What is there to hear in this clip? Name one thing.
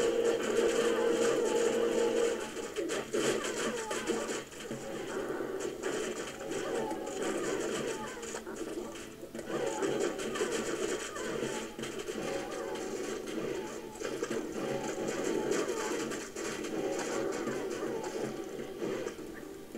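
Spells crackle and burst in a fight.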